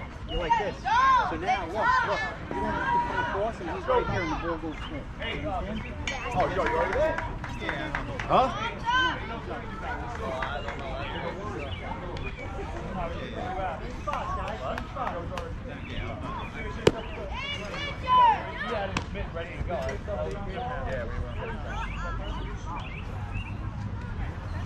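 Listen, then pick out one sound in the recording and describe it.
Children shout and cheer across an open field.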